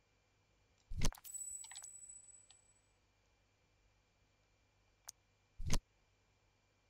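Short electronic menu chimes and clicks sound as options are chosen.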